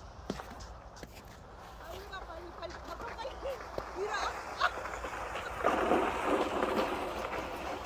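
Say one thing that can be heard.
A sled scrapes over ice, drawing closer.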